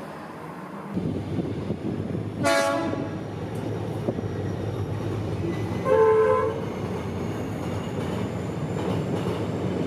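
A train engine rumbles loudly and steadily close by.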